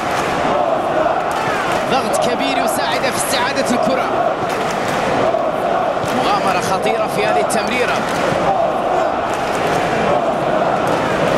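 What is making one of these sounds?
A large crowd cheers and chants steadily in a stadium.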